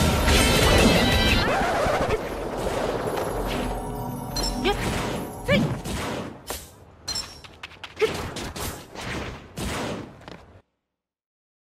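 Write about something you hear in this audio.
Blades swish and strike in a fast fight, with sharp hits and bursts.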